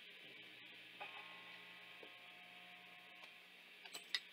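A guitar string is plucked and rings softly.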